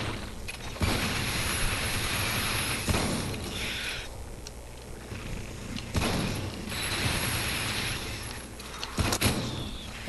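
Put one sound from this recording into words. A laser gun fires in rapid bursts.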